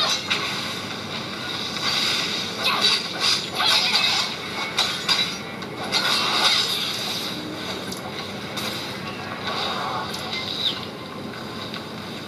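Game sound effects and music play from a phone's speaker.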